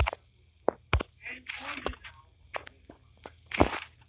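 Keypad buttons click as a code is entered.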